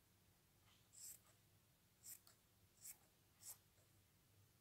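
Scissors snip through fabric in short cuts.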